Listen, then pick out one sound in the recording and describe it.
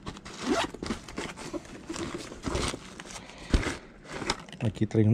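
Sequins rustle and scrape under a gloved hand.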